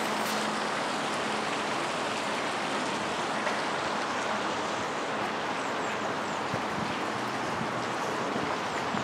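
Water rushes steadily through a weir.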